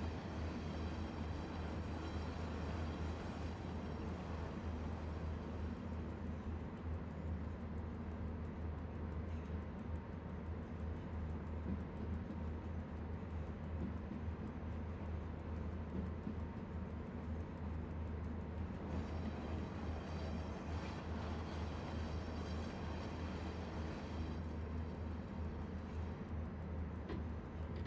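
A train engine hums low and steady as the train rolls along the rails.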